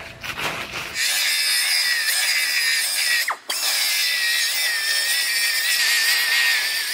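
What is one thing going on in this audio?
A cutting tool whines shrilly as it grinds through metal.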